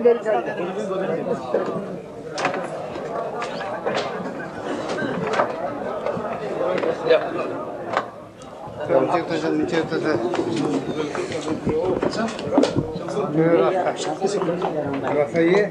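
A dense crowd of men chants and talks loudly close by.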